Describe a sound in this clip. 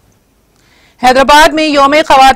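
A woman reads out calmly and clearly through a microphone.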